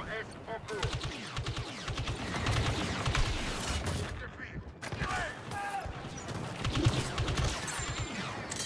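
Laser guns fire in rapid bursts of sharp zaps.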